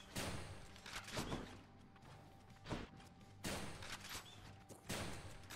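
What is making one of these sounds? Video game sound effects whoosh and crash in short bursts.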